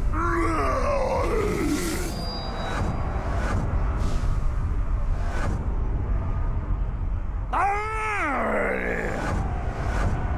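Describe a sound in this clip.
A monster lets out a deep, fierce roar.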